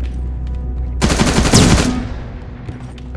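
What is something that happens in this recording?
A machine gun fires a rapid burst.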